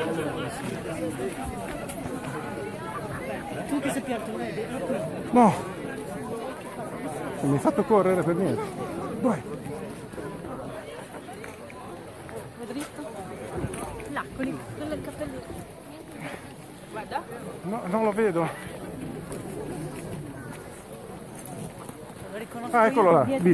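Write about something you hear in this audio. A large crowd chatters and calls out.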